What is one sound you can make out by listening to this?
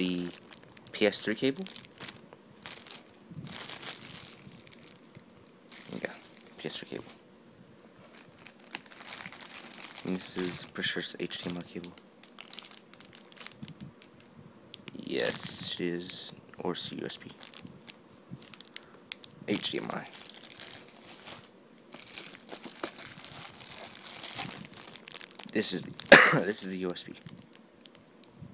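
Plastic wrapping crinkles and rustles up close.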